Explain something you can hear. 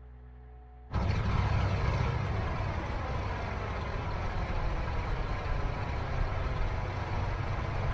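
A propeller engine drones loudly and close by outdoors.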